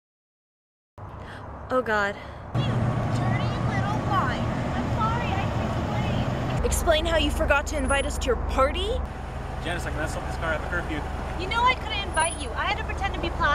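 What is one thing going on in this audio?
A young woman speaks calmly from a short distance.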